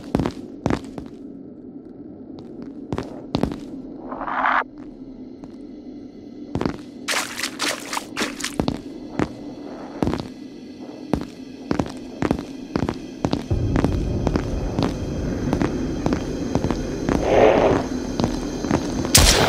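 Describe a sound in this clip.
A handheld detector clicks and crackles irregularly.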